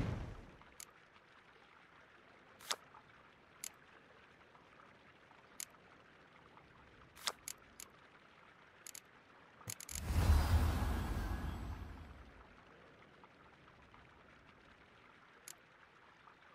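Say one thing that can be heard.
Soft clicks sound as cards are browsed.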